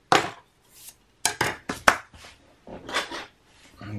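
A plastic strip clacks down onto a wooden bench.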